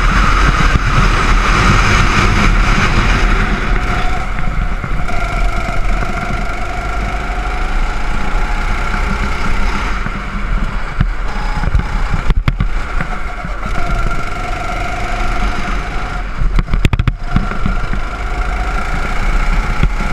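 A go-kart engine buzzes loudly close by, rising and falling in pitch as it speeds up and slows through the bends.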